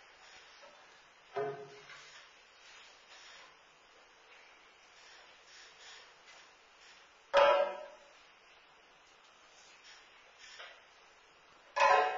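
A flute plays softly and breathily in an echoing hall.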